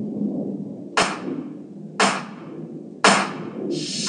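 Girls clap their hands sharply in rhythm.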